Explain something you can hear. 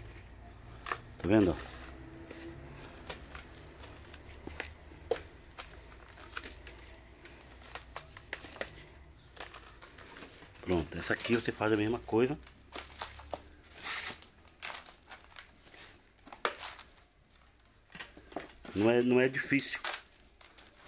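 A hand scoops and rustles through dry soil mix.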